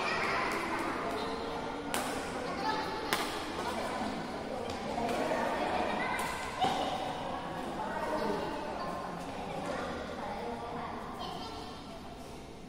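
Young men and women talk and call out to each other across the hall.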